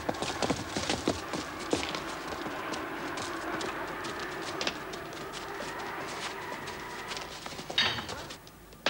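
Footsteps echo on a stone floor.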